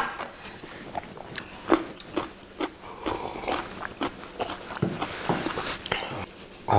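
Men slurp soup from bowls.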